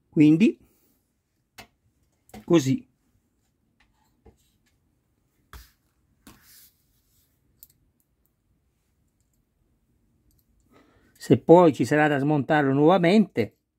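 Small plastic parts click softly as a toy wheel is handled.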